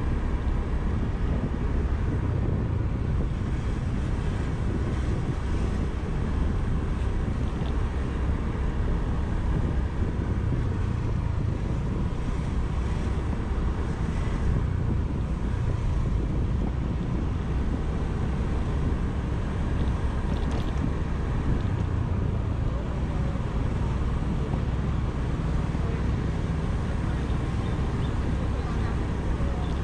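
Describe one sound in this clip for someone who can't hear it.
A scooter engine hums steadily while riding.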